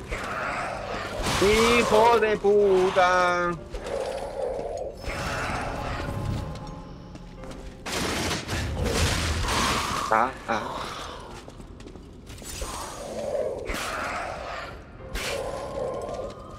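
Sword blows swish and clang in quick bursts.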